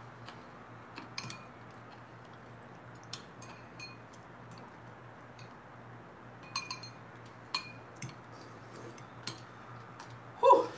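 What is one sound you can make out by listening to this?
A metal fork clinks and scrapes against a glass bowl.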